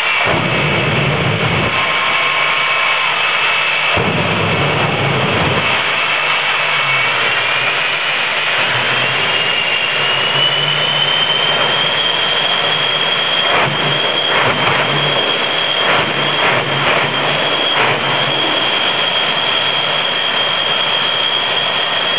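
Flames roar and whoosh from a truck's exhausts.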